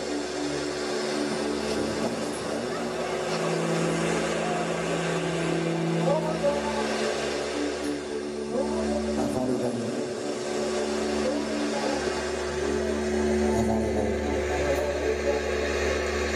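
A band plays live through loudspeakers.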